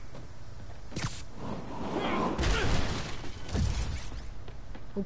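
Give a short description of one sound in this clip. Heavy wooden barrels crash and rumble as they fall.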